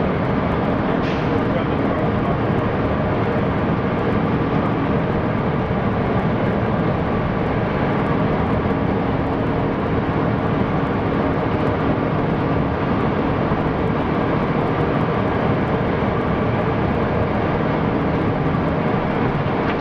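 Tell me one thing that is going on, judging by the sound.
Tyres rumble over a rough road.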